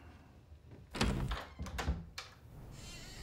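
A door handle turns and the latch clicks.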